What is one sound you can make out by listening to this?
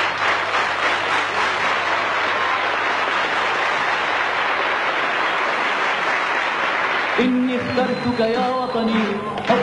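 A large audience applauds and cheers.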